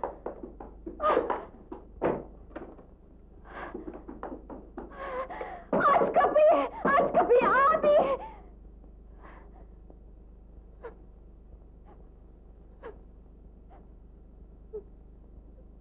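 A young woman pounds on a wooden door.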